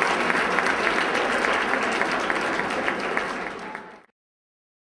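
People in a crowd clap their hands.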